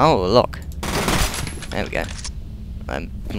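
A submachine gun fires a rapid burst that rattles against a wire fence.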